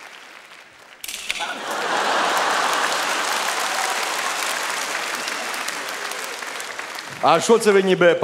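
A large audience laughs and applauds in a big hall.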